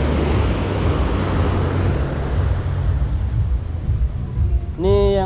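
Waves wash onto the shore with a steady rushing hiss.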